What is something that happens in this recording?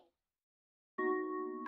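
A claw machine plays an electronic jingle.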